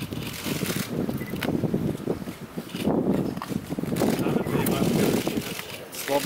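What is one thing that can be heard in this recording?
Paper rustles as a gift is unwrapped.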